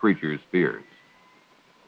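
A man speaks loudly and abruptly, close by.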